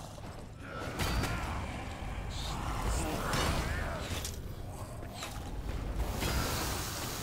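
A magic blast roars and crackles.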